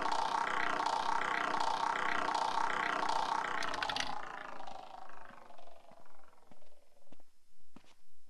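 A roulette ball rattles around a spinning wheel, bouncing more and more slowly.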